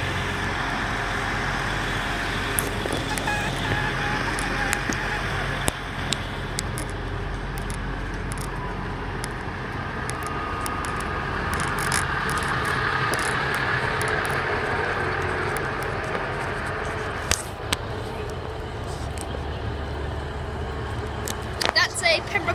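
A diesel train engine rumbles steadily nearby.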